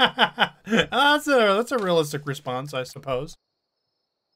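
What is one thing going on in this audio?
A man laughs into a close microphone.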